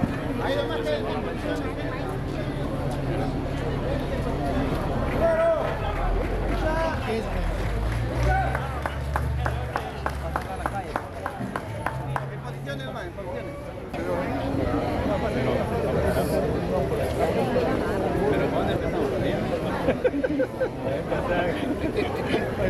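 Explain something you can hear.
A crowd of men and women talk and murmur outdoors.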